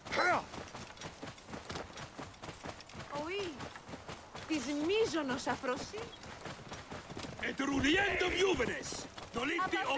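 Hooves clop steadily on stone paving.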